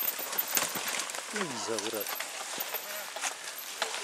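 A bicycle crashes to the ground as a rider falls.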